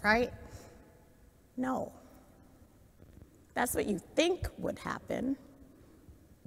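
A woman speaks warmly and clearly, close to a microphone.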